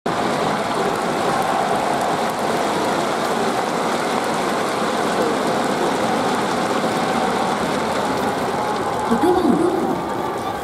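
A large stadium crowd chants and cheers in unison outdoors.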